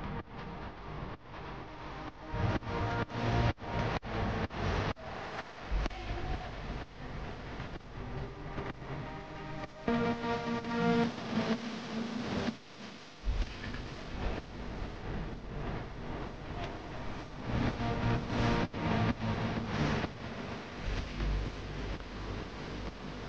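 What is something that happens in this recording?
Loud electronic dance music with a thumping beat plays over big speakers.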